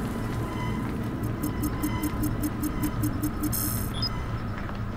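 A handheld radio crackles with static.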